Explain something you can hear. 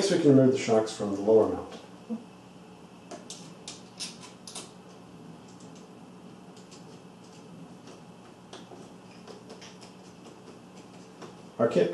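Small metal parts click and tap as a screwdriver works on them.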